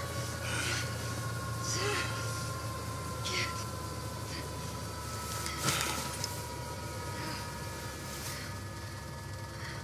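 A helicopter engine drones steadily from inside the cabin.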